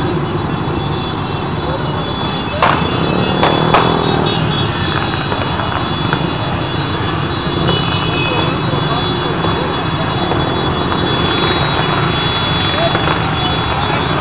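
Many small motorcycle engines drone as a large procession rides past outdoors.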